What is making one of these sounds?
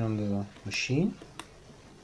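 A button on a metal keypad clicks as a finger presses it.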